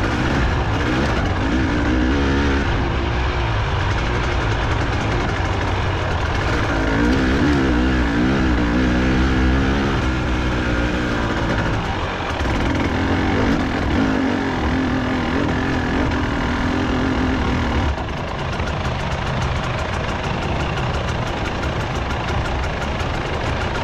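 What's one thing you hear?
A motorbike engine revs up and down while riding over rough ground.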